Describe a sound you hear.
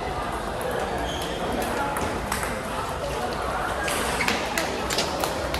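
Ping pong balls click sharply off paddles and tables in a large echoing hall.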